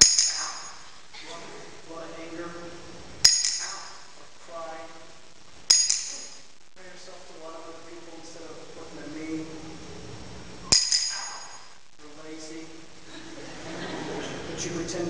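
A man speaks aloud in an echoing hall.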